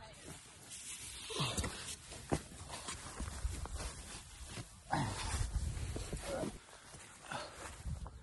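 Tent fabric rustles as someone crawls out.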